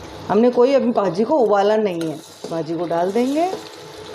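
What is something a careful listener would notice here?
Chopped vegetables drop into a pot.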